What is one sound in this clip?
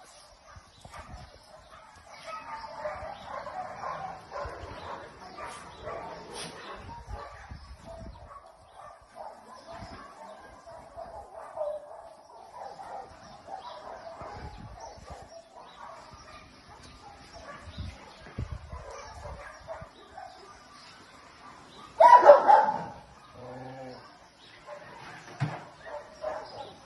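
Several dogs whine and yelp excitedly close by.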